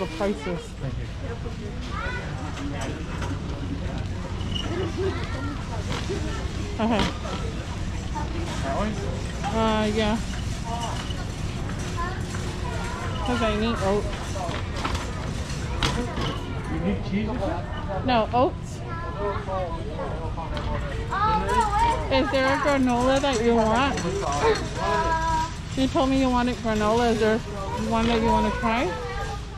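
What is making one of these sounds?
A shopping cart's wheels rumble over a smooth floor.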